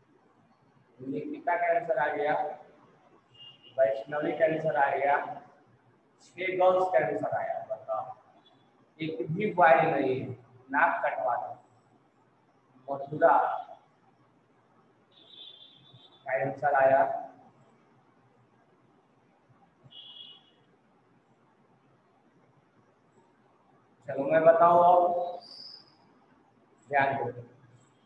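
A man lectures close by in short bursts with pauses.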